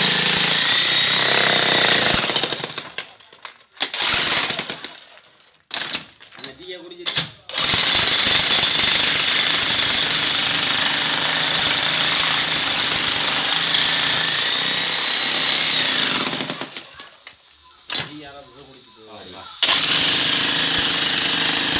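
A jackhammer pounds loudly into rock and soil in bursts.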